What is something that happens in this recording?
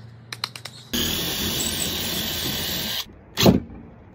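A cordless drill whirs as it drives into wood.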